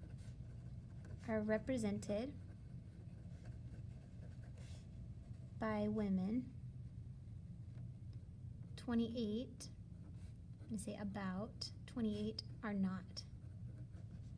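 A pencil scratches softly across paper.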